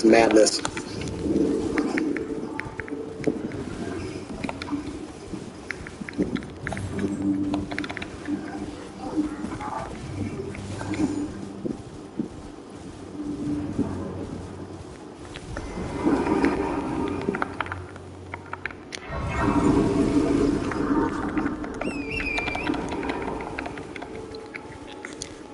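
Hooves gallop over grass and stone.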